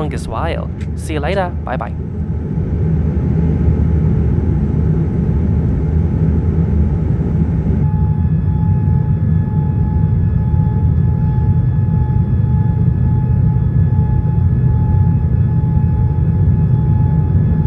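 Jet engines roar steadily in a loud, low rumble.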